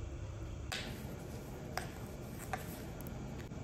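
Paper crinkles and tears as it is peeled off a frozen cup.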